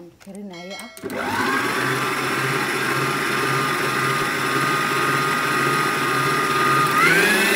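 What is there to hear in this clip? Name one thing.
A stand mixer motor whirs steadily as its whisk beats batter.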